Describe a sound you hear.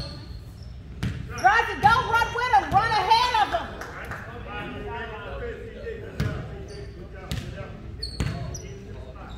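A basketball bounces with hollow thuds in an echoing hall.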